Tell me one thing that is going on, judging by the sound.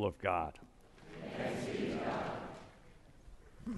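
A congregation of men and women murmurs a response together.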